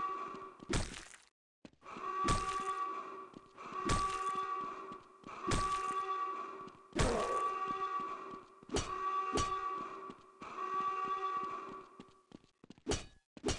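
An axe strikes a body hard, again and again, with a ringing thud.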